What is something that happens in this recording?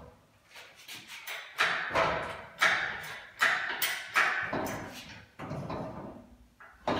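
A tool clanks sharply against a metal axle, with a ringing tail.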